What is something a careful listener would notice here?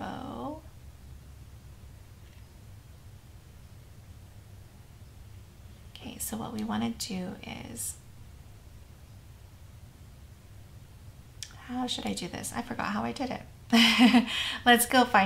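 A young woman talks calmly and cheerfully into a nearby microphone.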